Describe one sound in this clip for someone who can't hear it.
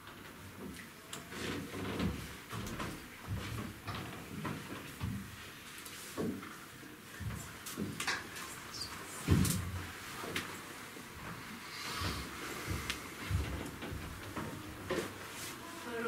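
Footsteps tap across a wooden stage.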